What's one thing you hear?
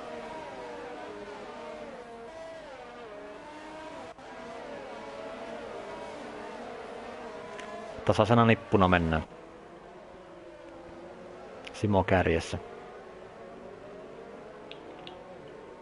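Racing car engines whine at high revs, shifting pitch as they accelerate and brake.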